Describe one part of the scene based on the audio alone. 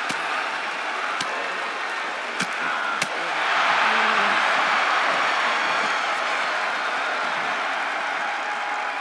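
A large crowd cheers steadily.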